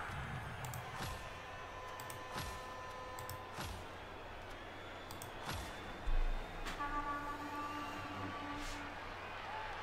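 A video game's menu gives short clicking and chiming sounds.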